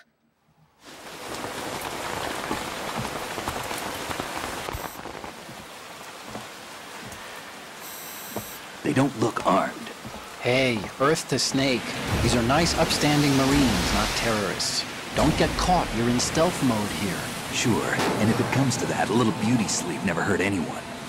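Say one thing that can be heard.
Heavy rain pours down outdoors in a storm.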